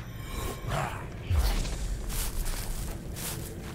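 Footsteps run over soft ground.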